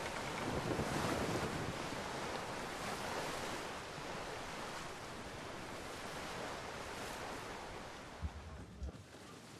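Waves rush and churn against a ship's hull at sea.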